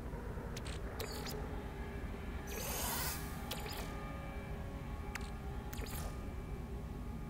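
Soft interface clicks and blips sound in quick succession.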